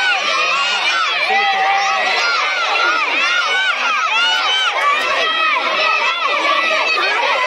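A crowd of children shouts and cheers outdoors.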